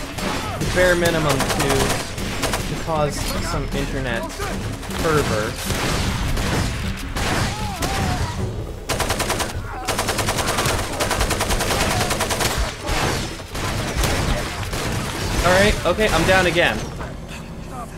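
Gunfire rattles loudly in bursts.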